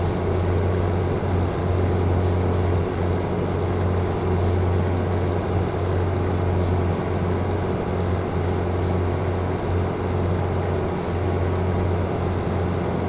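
A truck engine rumbles steadily as it drives along a highway.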